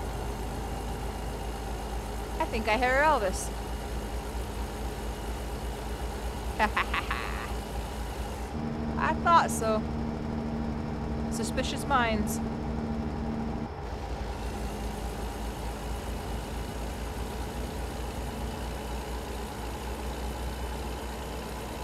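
A truck engine drones steadily as the truck drives along a road.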